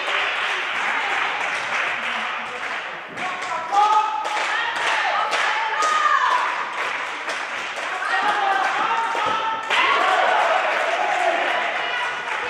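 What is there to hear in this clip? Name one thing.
Players call out to each other in an echoing hall.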